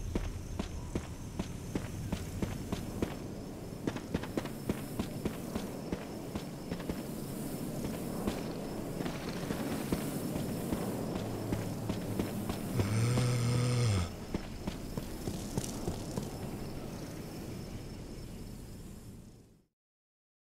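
Footsteps crunch over gravel and debris.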